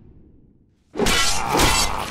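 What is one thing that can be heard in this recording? Magic spells and weapon blows clash loudly in a fantasy battle.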